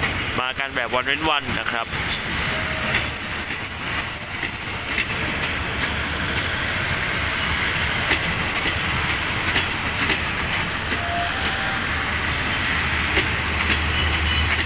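A passenger train rolls slowly along the tracks with a steady rumble.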